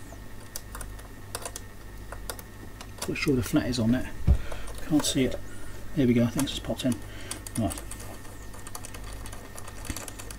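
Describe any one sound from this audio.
A small metal tool clicks and scrapes against metal parts up close.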